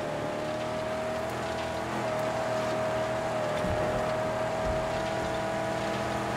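Tyres hiss over sand and gravel.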